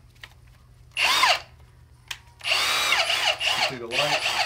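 A cordless power tool motor whirs up and winds down in short bursts.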